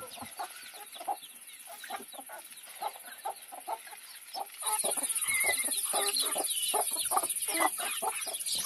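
Chickens cluck and chirp nearby.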